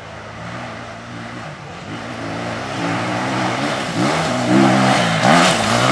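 A dirt bike engine revs hard as it approaches, growing louder.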